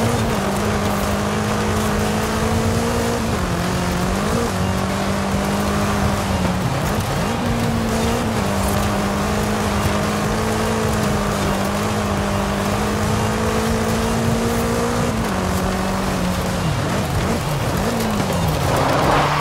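Tyres skid and crunch over loose gravel.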